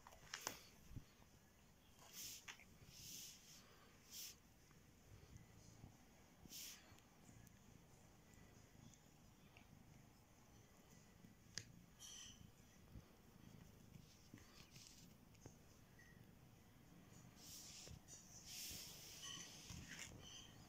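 A cat paws and rubs against a hand with soft rustling.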